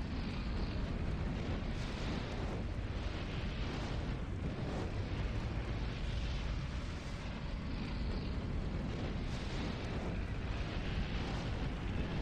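A vehicle's engine roars steadily.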